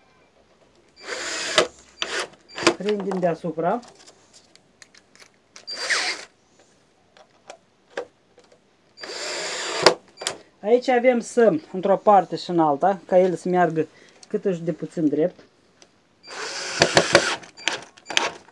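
A cordless drill whirs in short bursts, driving screws into wood.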